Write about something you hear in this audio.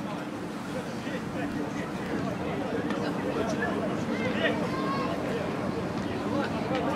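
Men shout to each other in the distance across a large open stadium.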